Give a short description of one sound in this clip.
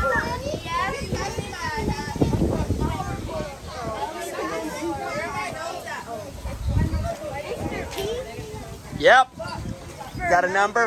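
Children talk and chatter nearby outdoors.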